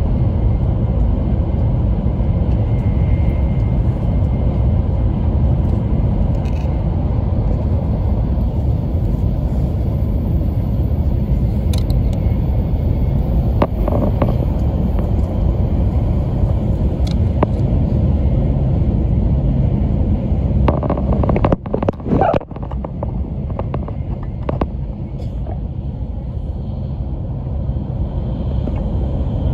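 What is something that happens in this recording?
A train rumbles steadily, heard from inside a carriage.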